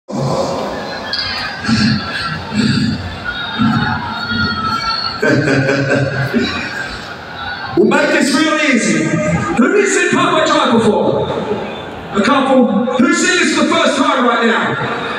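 A large crowd cheers and sings along.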